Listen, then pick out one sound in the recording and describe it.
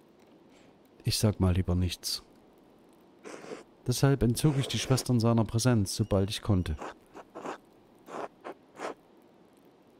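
A middle-aged man speaks casually into a close microphone.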